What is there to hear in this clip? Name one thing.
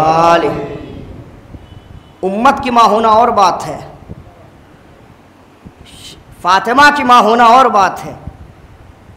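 A young man chants melodically in phrases through a microphone.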